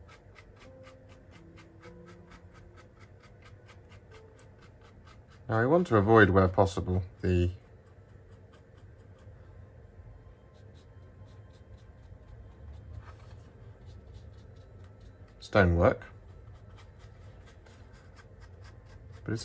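A stiff brush scrapes lightly back and forth.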